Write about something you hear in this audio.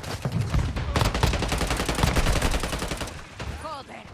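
Automatic rifle fire rattles in rapid bursts.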